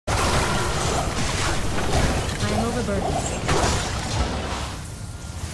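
Magic spells crackle and boom in quick bursts.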